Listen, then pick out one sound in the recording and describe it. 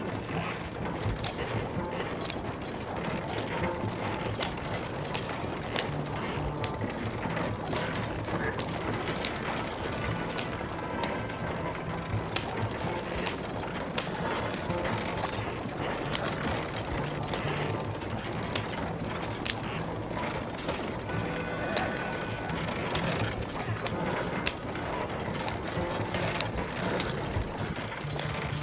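Wooden wheels rattle and clatter steadily along a railway track.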